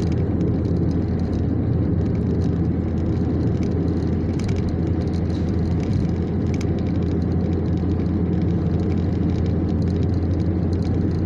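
A car's engine hums, heard from inside the car at highway speed.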